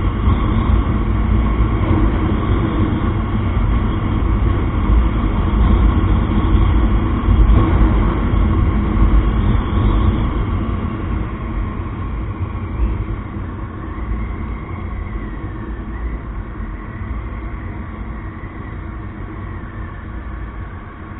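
Wind rushes past loudly and slowly eases off.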